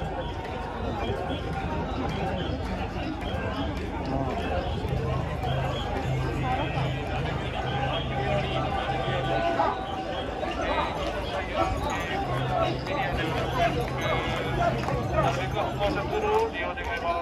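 A large outdoor crowd chatters and murmurs all around.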